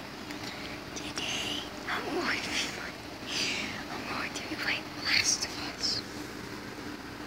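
A young woman laughs and squeals close by.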